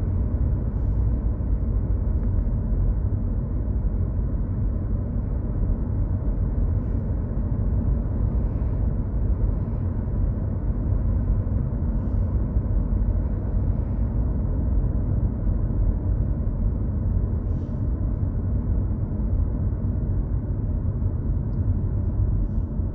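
Tyres roll steadily on the road.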